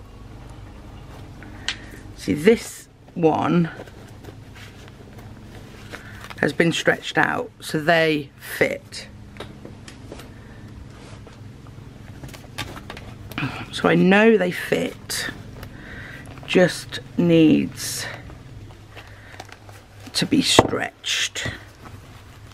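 Thin paper booklets rustle and flap as they are handled.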